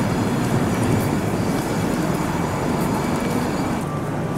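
Footsteps walk along a paved sidewalk.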